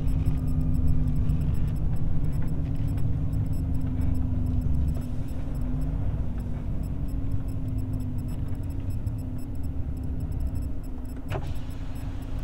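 Tyres roll over a rough road.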